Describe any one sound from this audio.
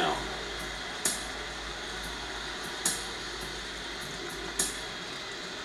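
Short menu click sounds play through a television speaker.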